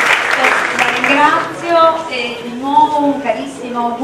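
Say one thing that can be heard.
A woman speaks calmly into a microphone, heard through loudspeakers in a large hall.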